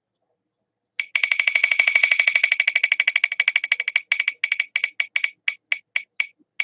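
A spinning wheel on a phone ticks rapidly, then slows down.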